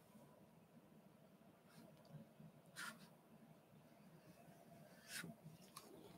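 A paintbrush brushes softly on paper.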